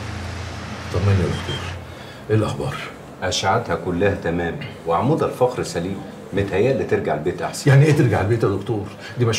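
Two middle-aged men talk in a quiet room.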